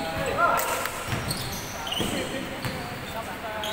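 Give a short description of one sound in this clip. A basketball bounces on a wooden court in a large echoing hall.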